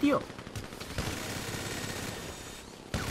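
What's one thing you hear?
A gun fires rapid shots.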